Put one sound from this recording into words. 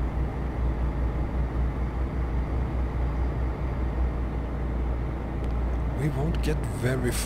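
A truck engine hums with a low, steady rumble as the truck drives along.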